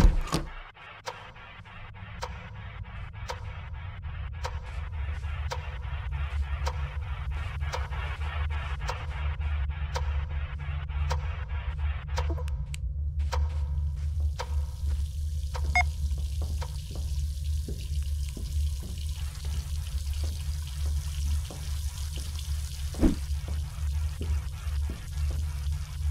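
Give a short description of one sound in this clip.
Footsteps tap quickly and steadily across a hard floor.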